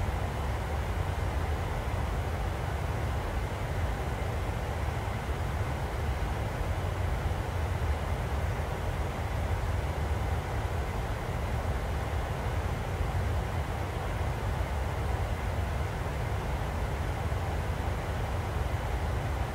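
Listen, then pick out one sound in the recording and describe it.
A jet engine roars steadily in a low, even drone.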